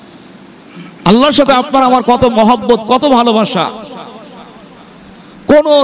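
A man speaks with animation through a microphone, his voice echoing in a large hall.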